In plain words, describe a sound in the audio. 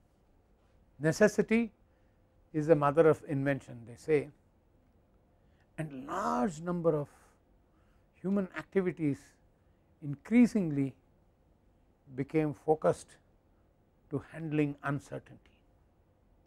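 An elderly man speaks calmly through a clip-on microphone, in short phrases with pauses.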